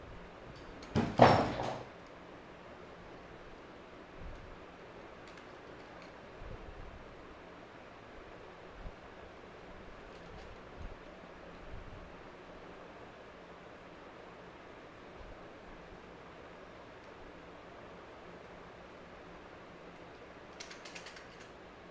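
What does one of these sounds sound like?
Plastic pens rattle and click as they are handled close by.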